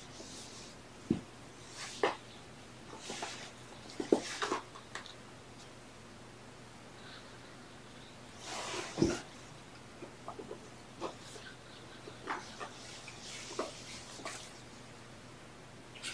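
Soft knocks and rustles come as a man handles a kitten close by.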